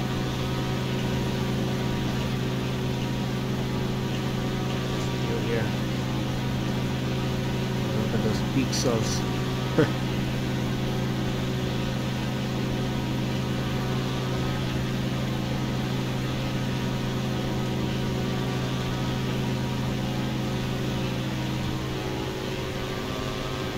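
A small propeller plane's engine drones steadily throughout.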